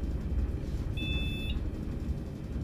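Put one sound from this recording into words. An elevator chime beeps twice.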